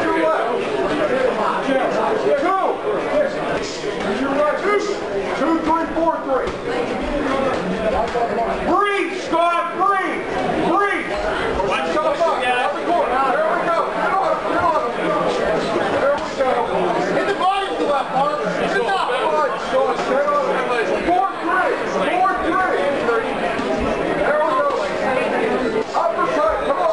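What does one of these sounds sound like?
A crowd of spectators shouts and cheers throughout, in a room that echoes.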